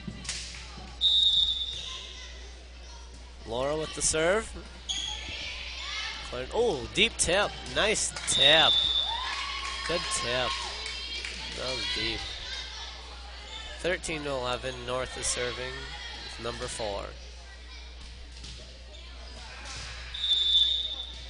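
A referee's whistle blows several short, shrill blasts.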